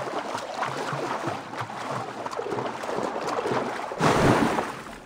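Water splashes as someone swims at the surface.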